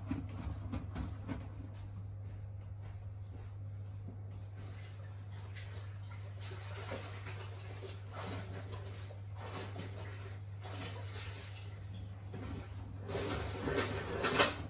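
A washing machine hums steadily.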